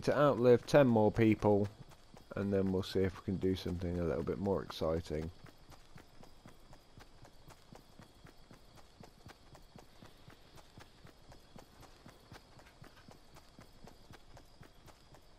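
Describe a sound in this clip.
Quick footsteps patter steadily on grass.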